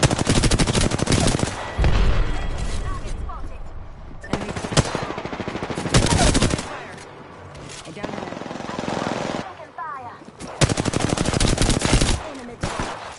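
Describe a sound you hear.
A video game automatic gun fires in rapid bursts.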